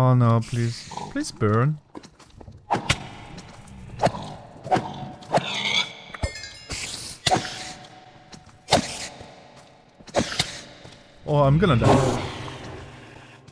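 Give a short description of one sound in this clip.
A ghostly creature moans and groans.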